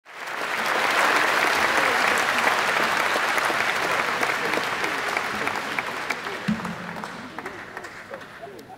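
A large crowd claps and applauds.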